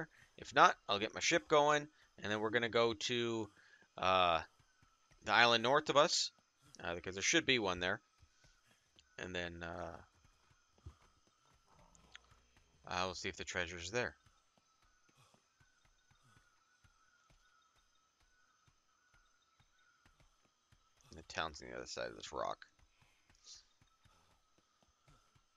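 Footsteps run quickly over soft sand.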